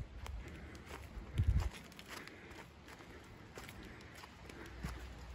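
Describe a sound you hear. Footsteps crunch and rustle over damp fallen leaves and needles outdoors.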